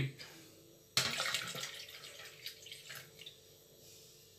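Liquid batter pours from a jug into a cup.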